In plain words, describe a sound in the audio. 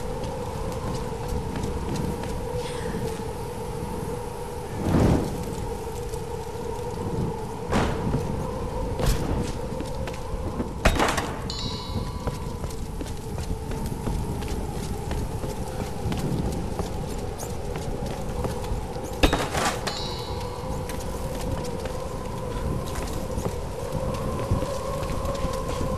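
A torch flame crackles and hisses.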